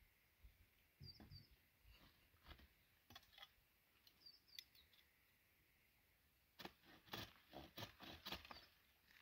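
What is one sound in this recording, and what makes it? Pruning shears snip and crack through thin branches close by.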